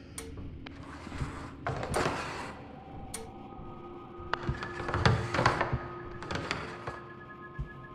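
A metal drawer slides shut and open with a scrape.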